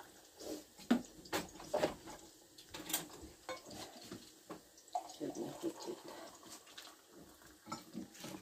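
A mug clinks against a counter.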